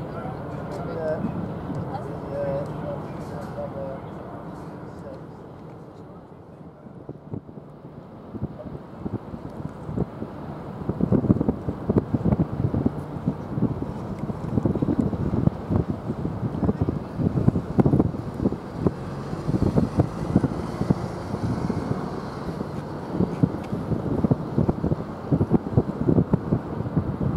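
A ship's engines rumble low and steadily across the water.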